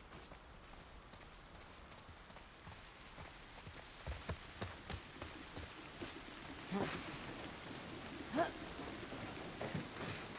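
Footsteps rustle through dense leafy plants.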